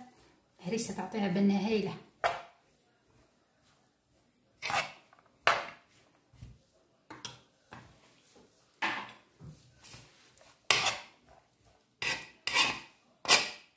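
A metal spoon scrapes and clinks against a bowl as food is stirred.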